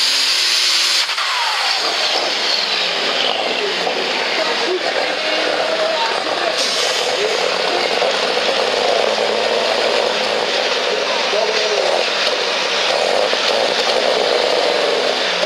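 A tractor engine rumbles and sputters as it idles.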